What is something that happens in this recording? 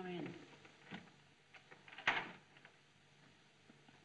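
A door clicks open.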